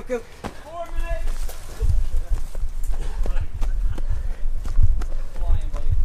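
Footsteps run quickly along a dirt path outdoors.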